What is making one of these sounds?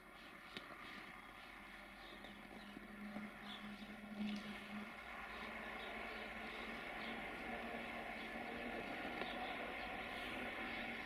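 An electric train approaches on the rails, its rumble slowly growing louder.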